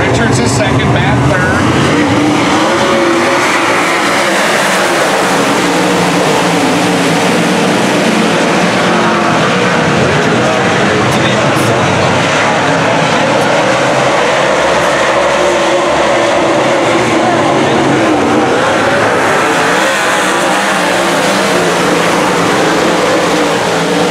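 Race car engines roar loudly as the cars speed around the track.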